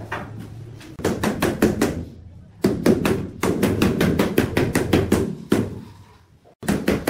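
A rubber mallet taps rapidly on a ceramic tile.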